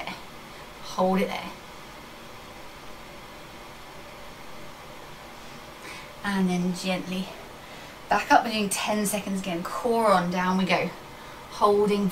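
A woman speaks calmly and fairly close by, in short bursts with pauses.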